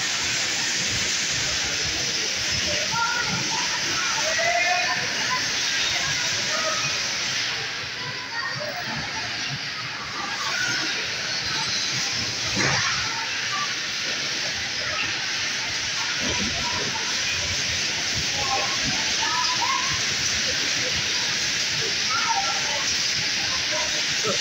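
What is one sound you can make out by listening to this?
Bumper cars hum and roll across the floor.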